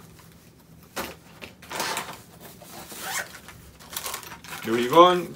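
Plastic items rustle and crinkle as they are handled.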